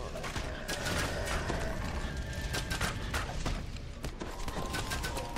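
Fiery spells burst and whoosh.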